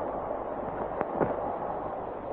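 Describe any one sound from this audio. A woman's footsteps thud on wooden stairs.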